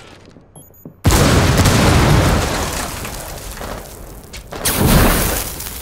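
A stun grenade bangs loudly close by.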